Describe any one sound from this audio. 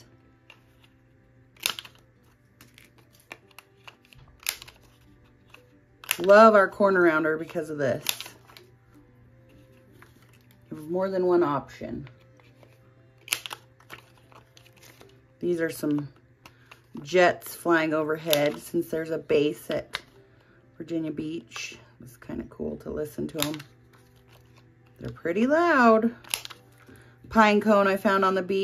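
Card stock rustles as it is handled.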